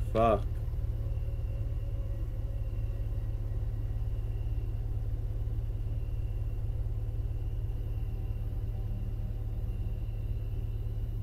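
A car engine hums steadily at low speed.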